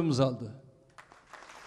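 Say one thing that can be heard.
An elderly man speaks calmly into a microphone over loudspeakers.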